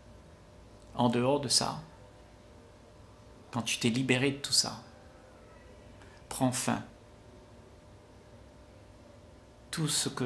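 An elderly man speaks calmly in short phrases, close to a microphone.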